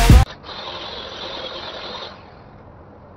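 A power grinder whirs and scrubs against metal.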